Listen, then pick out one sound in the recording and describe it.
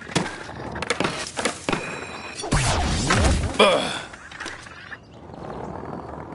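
Skateboard wheels roll and clatter on pavement.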